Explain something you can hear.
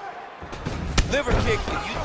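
A kick lands with a sharp thud.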